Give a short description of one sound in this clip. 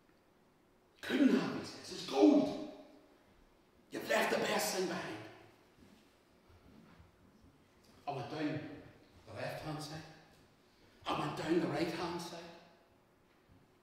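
A middle-aged man speaks with animation in a large echoing room, pausing between phrases.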